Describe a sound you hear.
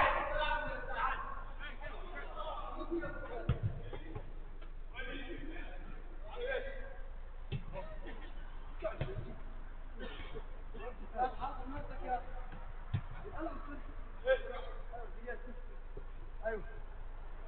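Men shout and call out to each other across a hall with an echo.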